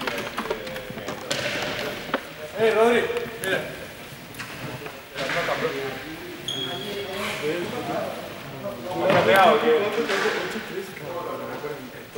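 Young men talk and call out nearby in a large echoing hall.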